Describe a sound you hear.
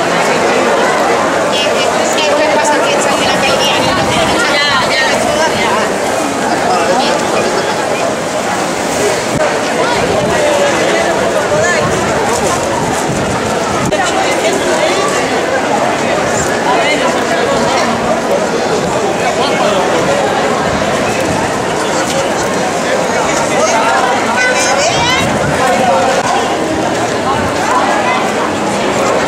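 A crowd of men and women chatter loudly outdoors.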